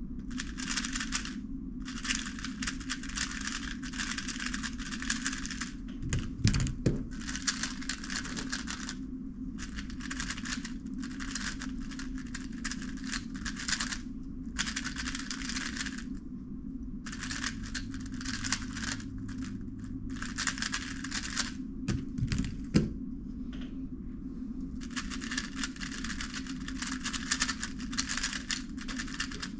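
A puzzle cube clicks and rattles quickly as it is turned.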